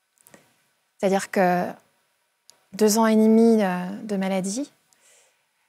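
A woman speaks with feeling, close to a microphone.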